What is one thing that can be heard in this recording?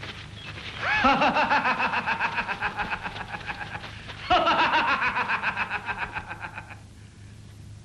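A man laughs loudly and heartily.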